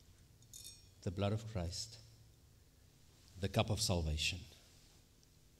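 A man speaks briefly and calmly through a microphone.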